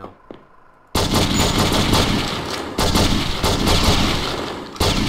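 A pistol fires shots in rapid succession, echoing loudly.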